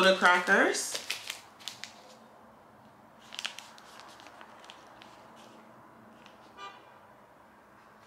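A cardboard carton crinkles and taps in someone's hands.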